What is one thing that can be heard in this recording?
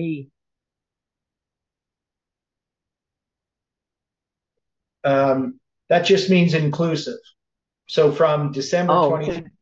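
An elderly man speaks calmly and closely into a microphone, with pauses.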